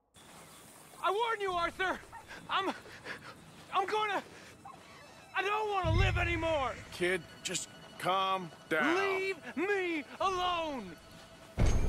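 A young man shouts in distress.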